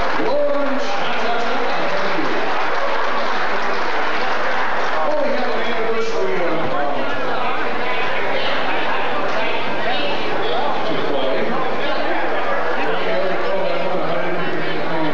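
A man sings into a microphone over a loudspeaker.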